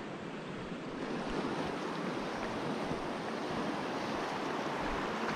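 A shallow river rushes steadily nearby.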